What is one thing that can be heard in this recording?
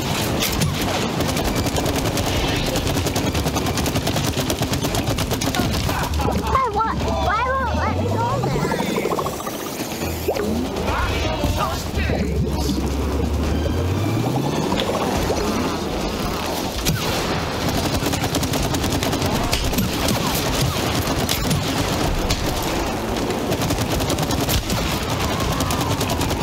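Game battle effects crash, zap and clatter throughout.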